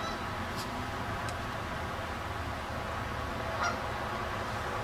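Geese honk now and then across open water.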